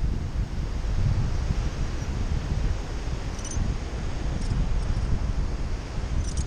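Wind rushes and buffets loudly past a microphone high in the open air.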